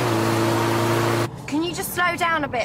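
A young woman talks inside a car.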